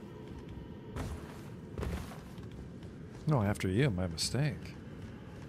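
A figure climbs a rock face with scraping thuds.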